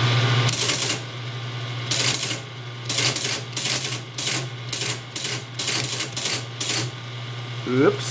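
Keys clack on a computer keyboard.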